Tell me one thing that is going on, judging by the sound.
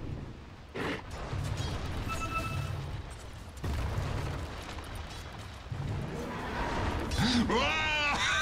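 Game battle effects of weapons striking and spells bursting sound in quick succession.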